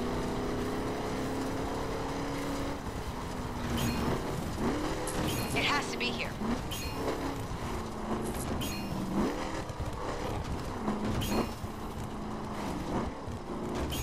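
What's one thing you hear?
Tyres rumble over rough dirt.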